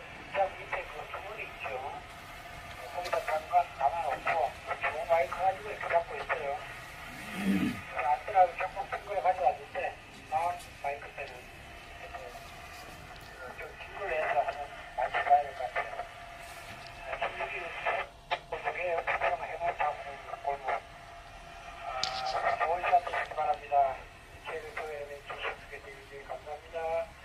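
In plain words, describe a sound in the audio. A man speaks into a radio microphone in a calm, steady voice.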